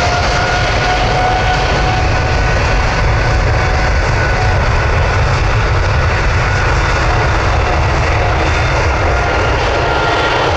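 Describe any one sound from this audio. Wind rumbles across an open field.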